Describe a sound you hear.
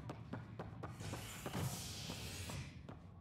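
A heavy sliding door opens with a loud hiss.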